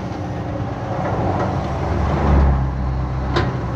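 Loose soil pours and thuds into a truck bed.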